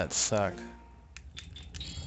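A menu chime sounds.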